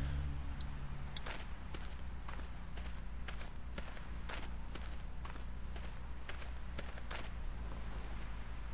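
Footsteps thud steadily on the ground, coming closer.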